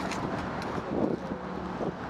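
Bicycle tyres roll steadily over pavement.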